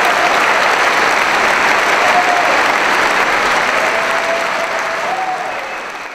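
A large crowd cheers and applauds loudly, slowly fading toward the end.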